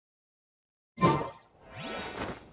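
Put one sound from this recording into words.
A game menu closes with a short chime.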